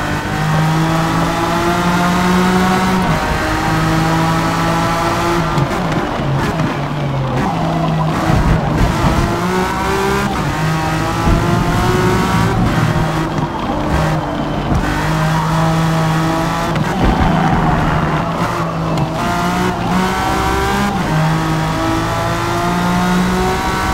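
A race car engine roars loudly, revving up through the gears and dropping in pitch as it brakes for corners.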